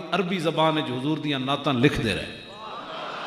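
An elderly man speaks forcefully through a microphone over loudspeakers.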